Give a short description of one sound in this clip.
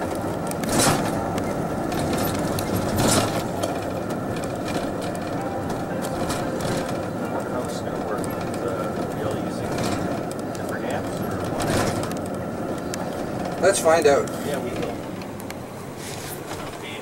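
A vehicle engine hums steadily from inside the cabin while driving slowly.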